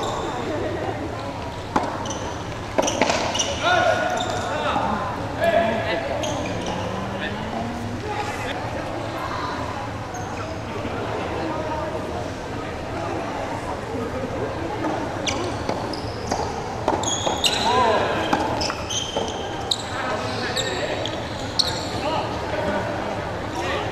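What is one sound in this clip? Young men call out and talk across a large echoing hall.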